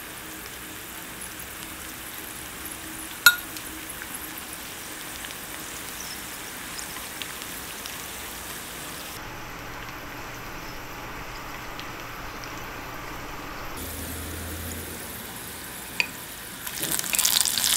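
Garlic sizzles softly in hot oil.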